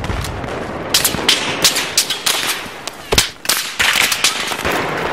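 Gunfire rattles in quick bursts close by.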